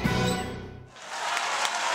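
An orchestra plays a final loud chord with a trumpet.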